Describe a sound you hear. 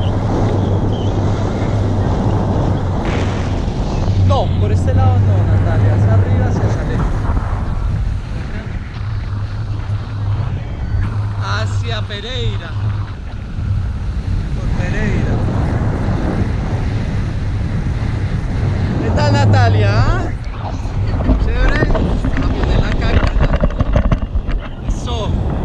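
Wind rushes loudly and steadily past a microphone outdoors.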